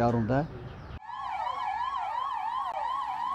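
An ambulance siren wails rapidly up and down nearby.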